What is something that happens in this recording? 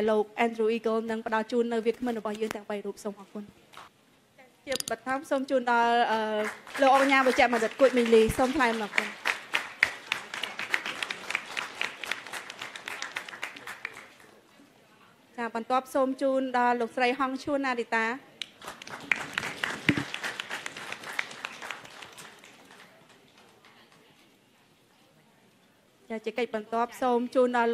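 A young woman speaks clearly through a microphone.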